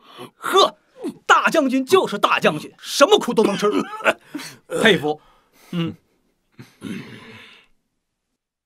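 A young man speaks with animation, close by.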